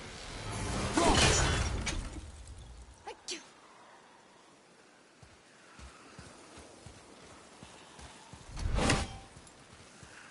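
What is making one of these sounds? An axe strikes with a heavy thud.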